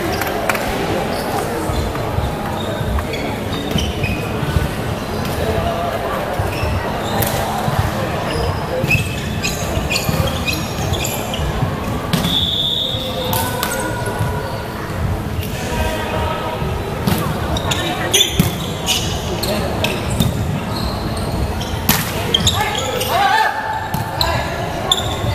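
Young men shout and call out to one another in a large echoing hall.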